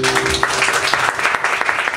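An acoustic guitar chord rings out briefly.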